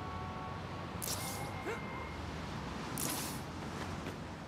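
A rope whips through the air with a sharp whoosh.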